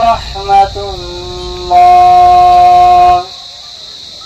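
A man chants a long, drawn-out call through a loudspeaker.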